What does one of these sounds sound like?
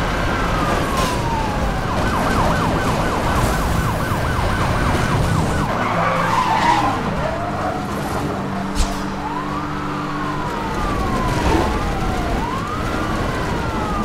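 Tyres skid and scrape on dirt.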